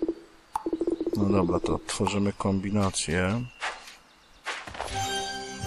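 Magical zaps and chimes ring out.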